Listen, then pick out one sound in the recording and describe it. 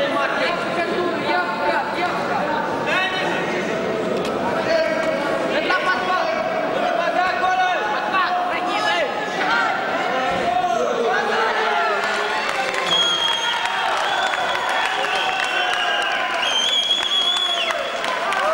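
A crowd in a large echoing hall shouts and cheers throughout.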